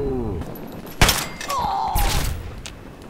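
A gun fires a few sharp shots.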